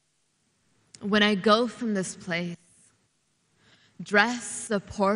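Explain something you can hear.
A young woman recites expressively into a microphone, heard through loudspeakers.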